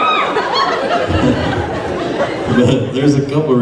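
A middle-aged man talks close to a microphone.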